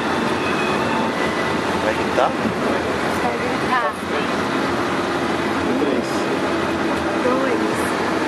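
Voices of several people chatter nearby.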